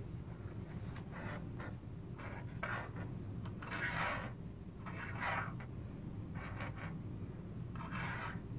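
Wooden clothespins clack down onto a table.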